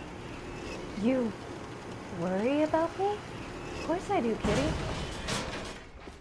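A young woman talks through a microphone.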